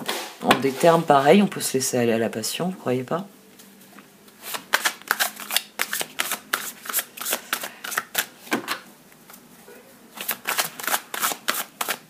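Playing cards are shuffled with quick, crisp riffling snaps.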